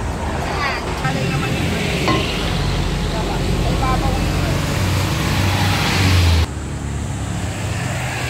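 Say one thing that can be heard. Traffic rumbles steadily nearby outdoors.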